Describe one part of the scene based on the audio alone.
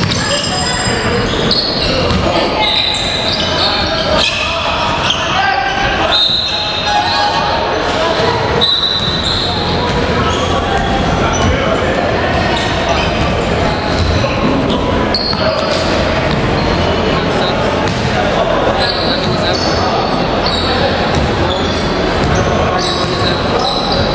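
Basketball sneakers squeak on a hardwood court in an echoing gym.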